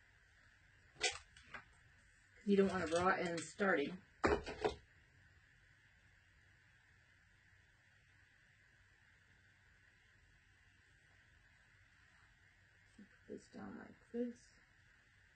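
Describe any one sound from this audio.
A middle-aged woman speaks calmly close by.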